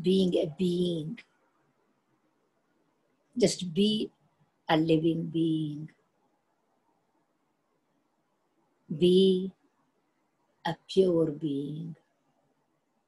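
An elderly woman speaks calmly and slowly in short phrases over an online call.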